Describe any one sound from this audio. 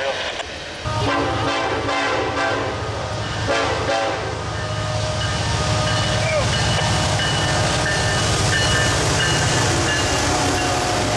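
A diesel locomotive engine roars as it passes close by.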